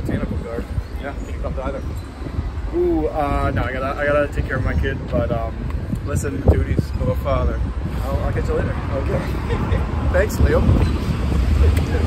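Another man talks and laughs, close by.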